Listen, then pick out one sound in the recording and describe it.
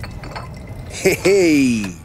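A man calls out a cheerful greeting.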